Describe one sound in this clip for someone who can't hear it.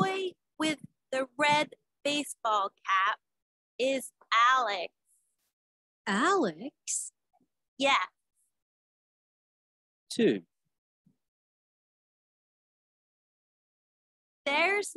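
A woman speaks with animation through an online call, in short bursts with pauses.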